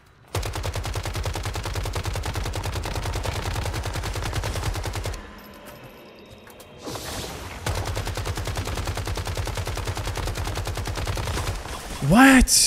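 Rapid automatic gunfire rattles in fast bursts.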